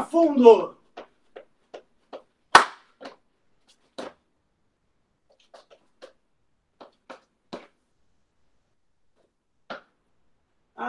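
Feet thud and shuffle on a wooden floor.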